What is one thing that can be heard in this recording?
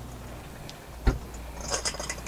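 A refrigerator door thuds shut.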